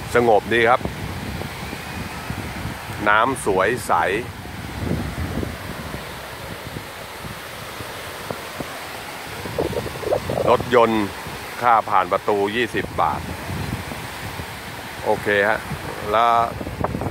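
Small waves wash steadily onto a sandy shore.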